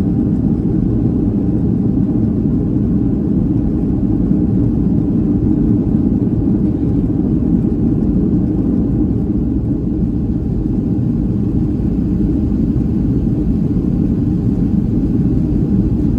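A jet engine roars steadily, heard from inside a plane cabin.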